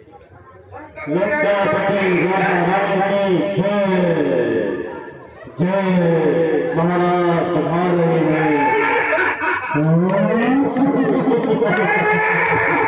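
A man sings loudly through loudspeakers.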